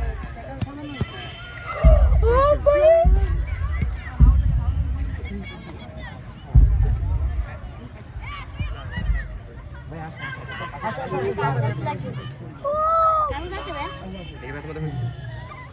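Children talk and call out excitedly close by.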